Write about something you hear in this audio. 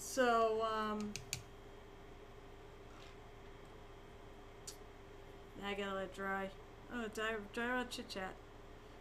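A woman speaks calmly and close into a microphone.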